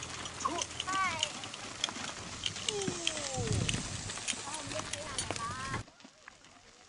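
Horse hooves clop steadily on a dirt road.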